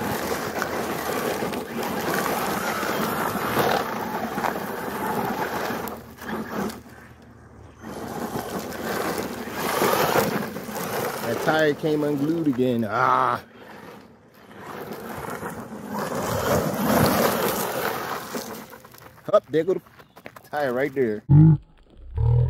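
A small electric motor whines and revs up and down as a toy car races.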